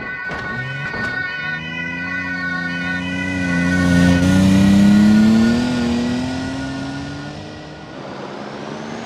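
A car engine revs and rises in pitch as it drives off.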